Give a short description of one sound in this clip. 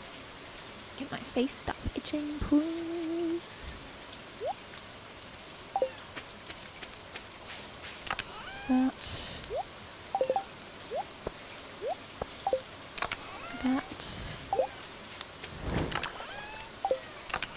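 Short electronic blips and clicks sound from a game menu.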